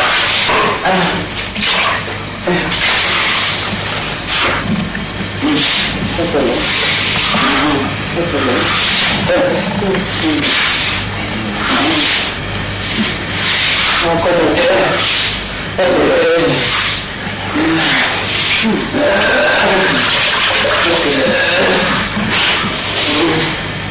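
An older man speaks anxiously close by.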